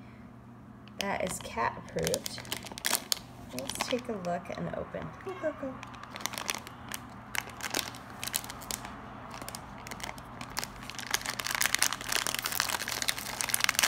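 A plastic wrapper crinkles and rustles in hands.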